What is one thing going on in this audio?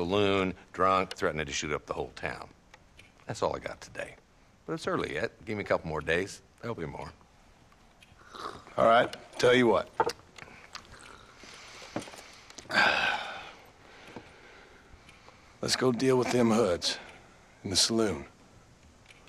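A middle-aged man speaks in a low, calm voice, close by.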